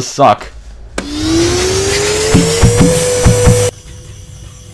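A vacuum cleaner starts up with a rising whine.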